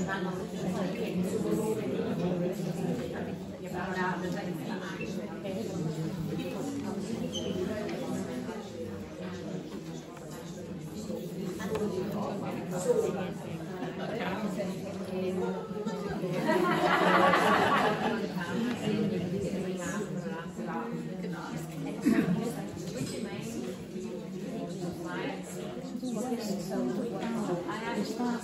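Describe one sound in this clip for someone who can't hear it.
Several women talk with one another nearby in a room with a slight echo.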